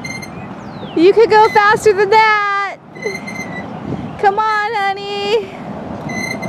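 A young boy sings out in a high voice nearby.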